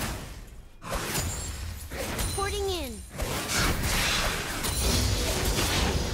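Magic spells crackle and burst during a fast fight.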